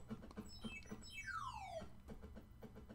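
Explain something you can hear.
A falling electronic tone sweeps down in pitch.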